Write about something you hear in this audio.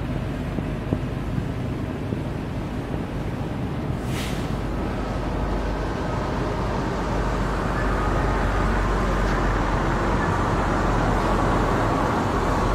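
Wind rumbles steadily across the microphone outdoors and grows a little stronger.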